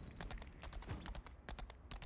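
A magic spell crackles and bursts.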